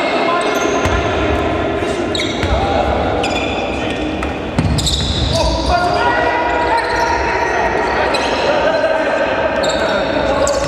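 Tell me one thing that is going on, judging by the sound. A basketball bounces on the court as players dribble.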